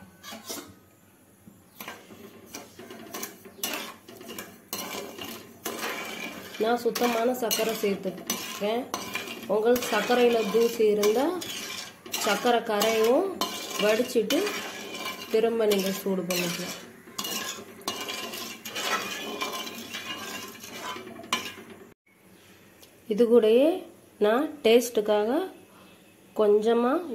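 Hot oil sizzles and bubbles in a pan.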